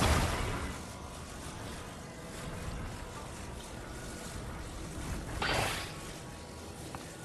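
A soft magical hum drones steadily.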